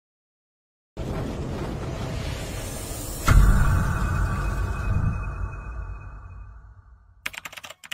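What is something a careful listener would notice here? A burst of flame whooshes and rumbles.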